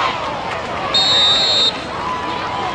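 A referee's whistle blows once, sharp and shrill.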